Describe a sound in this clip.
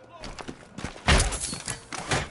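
A gadget thuds onto the floor.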